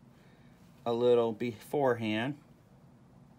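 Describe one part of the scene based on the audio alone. A man speaks briefly and close by.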